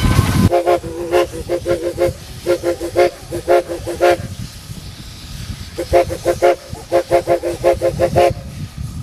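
A steam locomotive whistle sounds in short repeated blasts.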